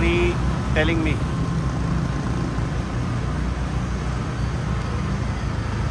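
A motorbike engine hums as it rides past.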